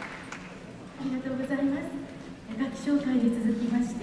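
A woman announces through a microphone in a large echoing hall.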